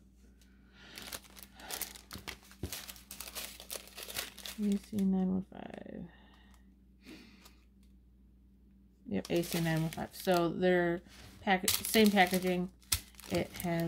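Plastic packets crinkle and rustle in a person's hands.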